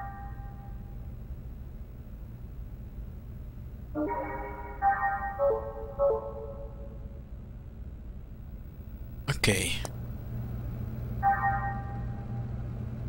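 Short electronic menu chimes ring out in bright, pitched tones.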